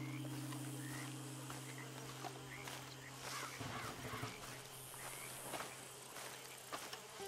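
A horse's hooves thud slowly on soft ground.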